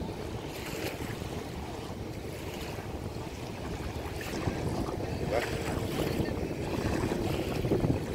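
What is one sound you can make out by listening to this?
Wind blows steadily across the open water.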